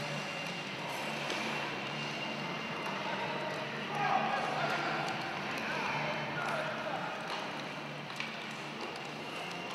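Hockey sticks tap and clack on the ice.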